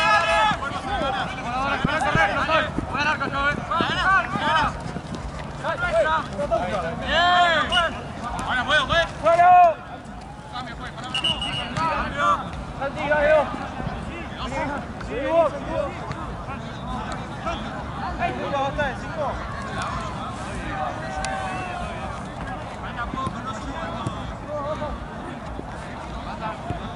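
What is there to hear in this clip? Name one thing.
Young men shout and call out loudly across an outdoor playing field.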